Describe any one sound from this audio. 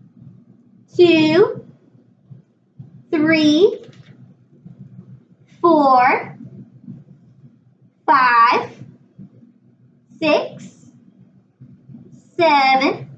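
A young woman counts aloud slowly and clearly, pausing between each number.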